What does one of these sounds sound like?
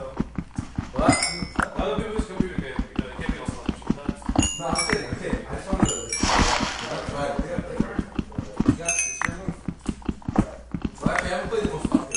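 A pickaxe taps rapidly at stone.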